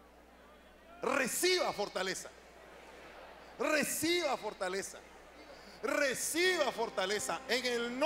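A man preaches with fervour into a microphone, his voice booming through loudspeakers in a large echoing hall.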